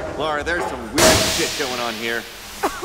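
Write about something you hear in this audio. Gas bursts out with a loud, steady hiss.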